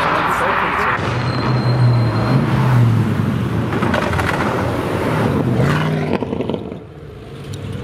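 A deep engine idles and rumbles nearby.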